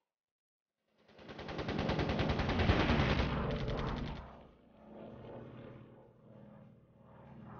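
A propeller plane's engine roars.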